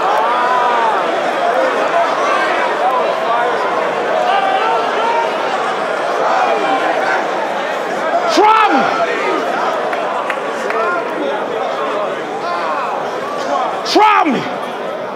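A large crowd chatters and shouts loudly in an echoing hall.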